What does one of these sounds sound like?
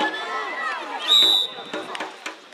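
A referee's whistle blows a short sharp blast.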